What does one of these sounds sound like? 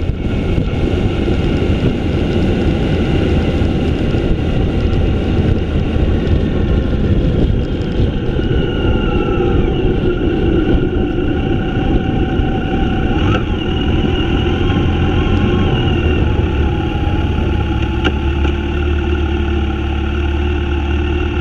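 Wind roars loudly past while riding.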